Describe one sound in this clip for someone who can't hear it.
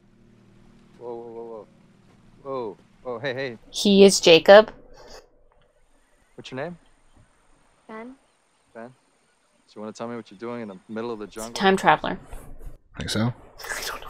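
A young man speaks in a film playing in the background.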